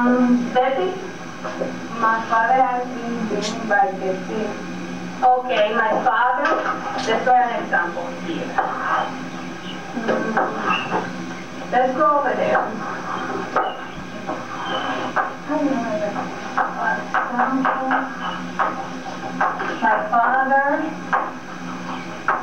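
A woman speaks steadily through a microphone, lecturing.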